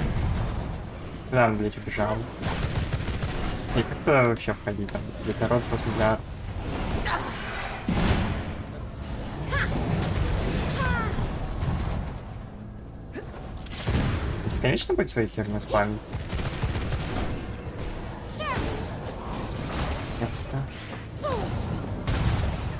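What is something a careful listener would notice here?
Spells crackle and blast as a game character fights monsters.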